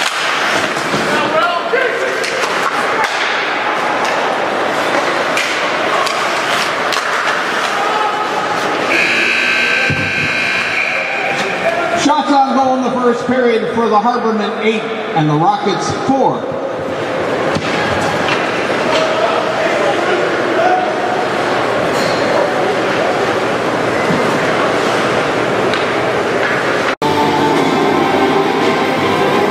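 A crowd chatters and cheers in a large echoing arena.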